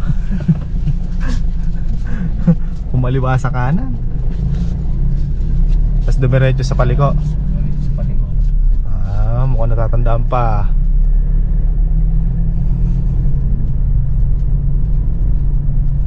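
A car engine hums steadily at low speed from inside the car.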